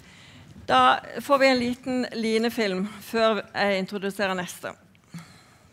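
A woman speaks with animation into a microphone in an echoing hall.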